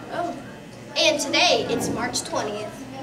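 A second young girl speaks nearby.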